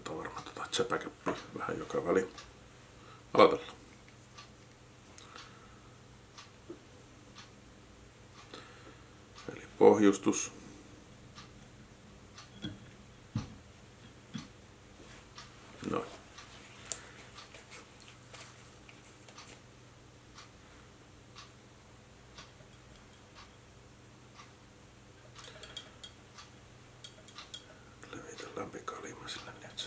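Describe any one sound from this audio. Small metal tools click and tap faintly.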